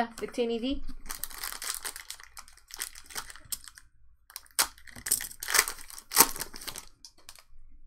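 A foil wrapper tears open with a crackle.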